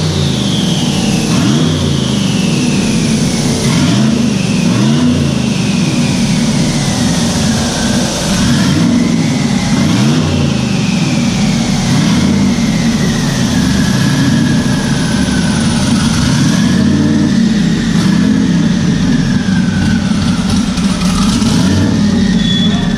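A powerful car engine roars loudly at high revs, rising and falling.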